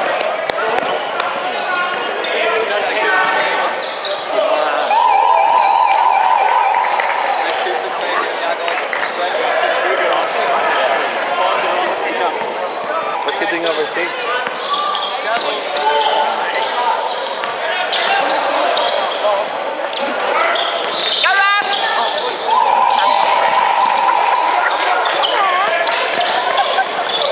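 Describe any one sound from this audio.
Players and spectators call out in a large echoing gym.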